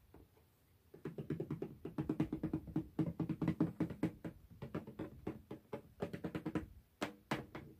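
Fingers rub and brush across a tin lid.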